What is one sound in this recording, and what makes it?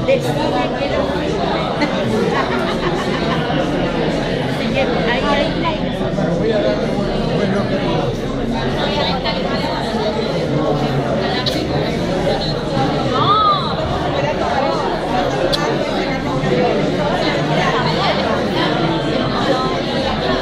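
A crowd of adults chatters steadily all around, close by, in a room that echoes.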